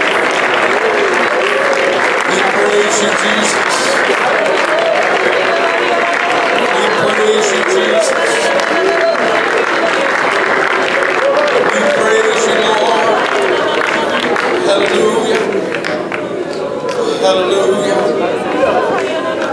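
A woman sings along close by.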